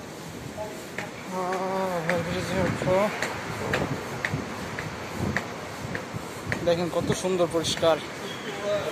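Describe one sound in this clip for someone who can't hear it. Footsteps climb hard stairs and walk on, at a steady pace.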